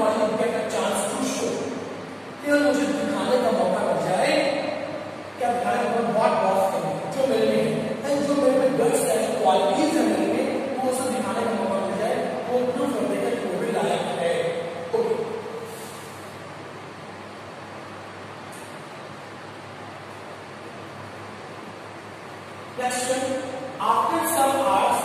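A man lectures with animation, close by.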